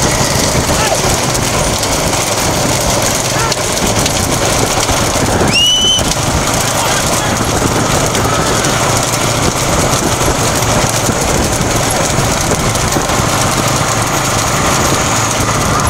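Bullock carts rumble along a paved road.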